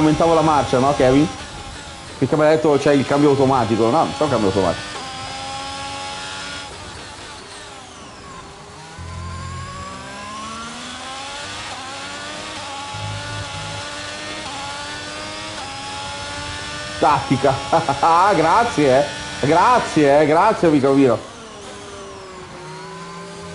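A racing car engine whines and shifts gears.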